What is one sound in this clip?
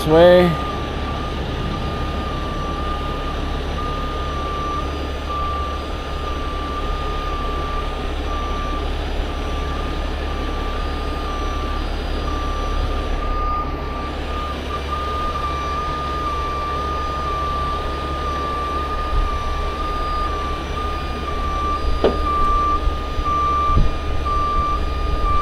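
A warning beeper chirps in a steady repeating pattern.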